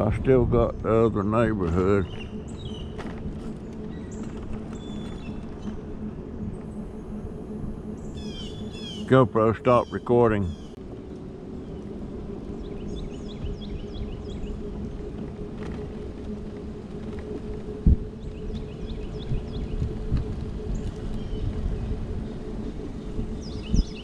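An electric scooter motor hums steadily.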